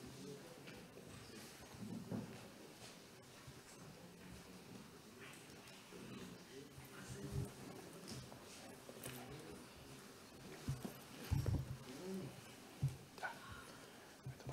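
Men murmur quietly in a large room.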